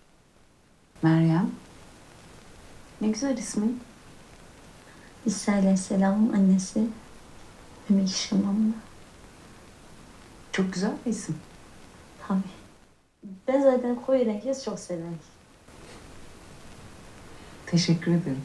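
A young woman speaks calmly, heard through a loudspeaker.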